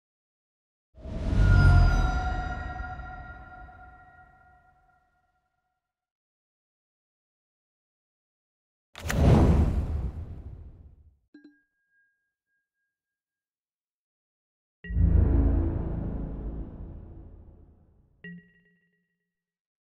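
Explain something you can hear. Computer game sound effects chime and boom, then ring out and fade, three times.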